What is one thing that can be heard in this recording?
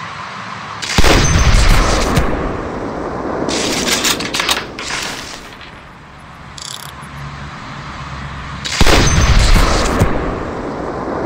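A sniper rifle fires a loud, booming shot that echoes away.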